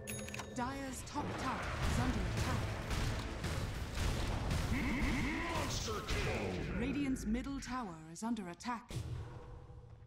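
Combat sounds clash and thud in a game.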